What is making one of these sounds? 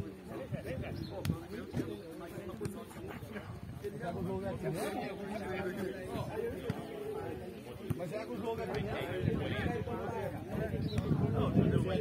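A football is kicked with dull thumps.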